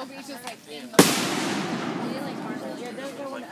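Fireworks crackle and sizzle after bursting.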